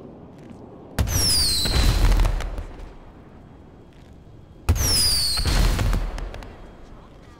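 A rocket launcher fires with a loud, whooshing blast.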